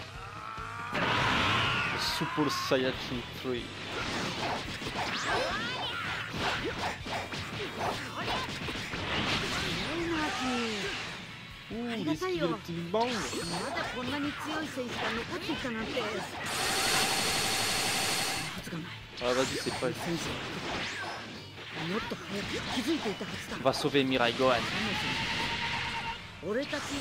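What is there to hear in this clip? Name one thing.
Energy blasts whoosh and explode.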